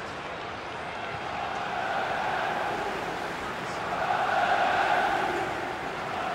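A large crowd chants loudly in an open stadium, swelling and easing.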